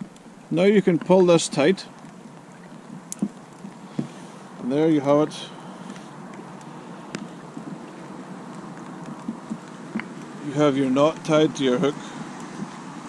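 A middle-aged man speaks calmly, close to the microphone, in short bursts.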